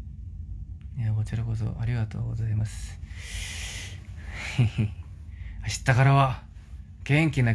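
A young man speaks casually and close to a phone microphone.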